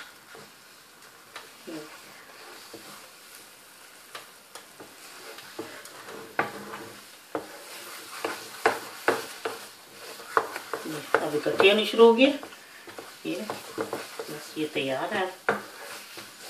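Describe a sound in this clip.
A wooden spoon scrapes and knocks against a pan while stirring a thick mixture.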